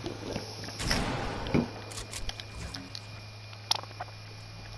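A pickaxe strikes hard surfaces with sharp thuds.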